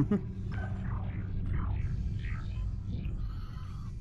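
Steam hisses loudly.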